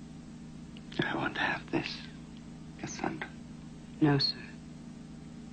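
A man speaks quietly and slowly, close by.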